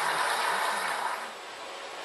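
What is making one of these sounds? A billiard ball rolls softly across the cloth.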